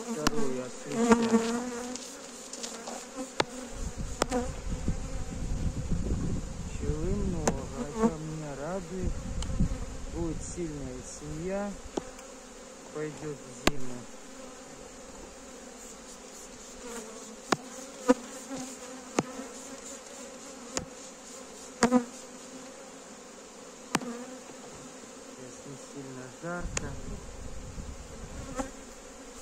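Wooden frames knock and scrape against a hive box.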